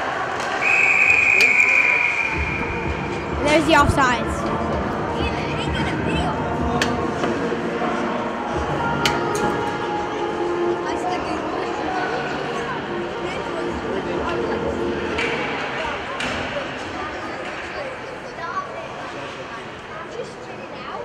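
A crowd murmurs and calls out in a large echoing rink.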